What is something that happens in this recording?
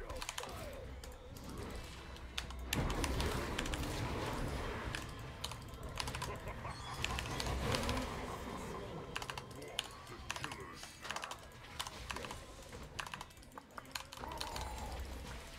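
Game battle sounds of spells and hits crackle and thump.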